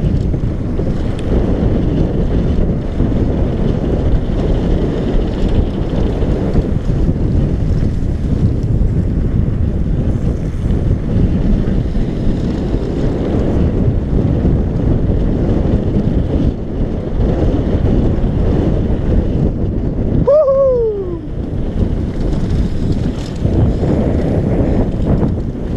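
Wind buffets a helmet microphone in a loud, steady roar.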